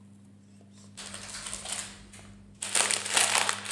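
A plastic wrapper crinkles and rustles close up.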